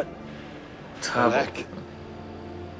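A young man answers in a low voice.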